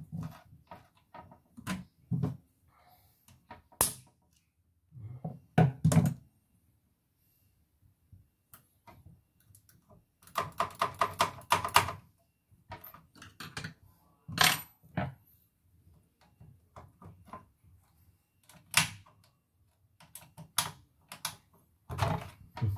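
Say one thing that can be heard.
Plastic parts of a printer click and rattle as they are handled.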